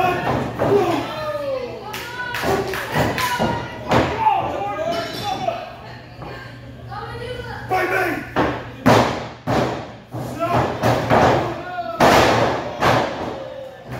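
A small crowd of men and women cheers and shouts indoors.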